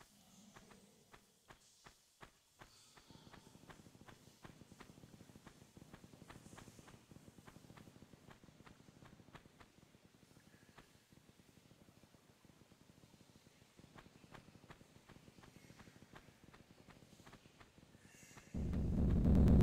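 Quick footsteps patter on rocky ground.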